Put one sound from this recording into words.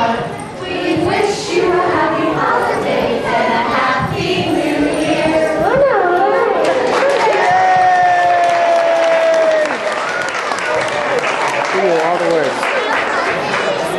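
Young children sing together nearby.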